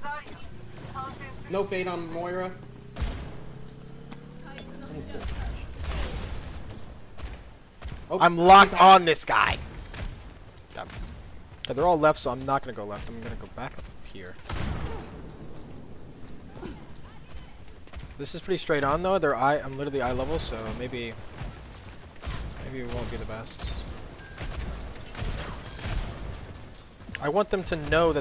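Gunshots fire in quick bursts from a game.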